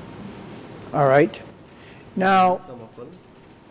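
A middle-aged man speaks briefly through a microphone.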